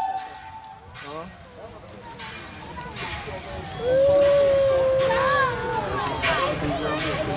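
A steam locomotive chuffs slowly as it approaches.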